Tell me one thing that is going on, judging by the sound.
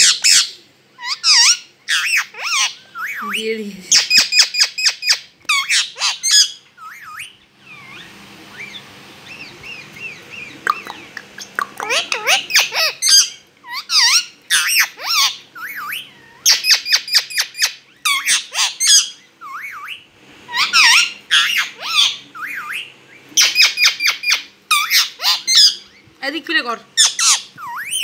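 A rose-ringed parakeet chatters and squawks.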